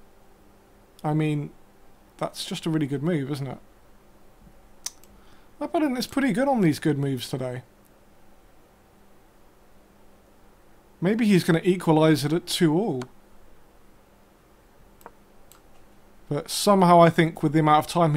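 A young man talks thoughtfully into a close microphone, in short bursts with pauses.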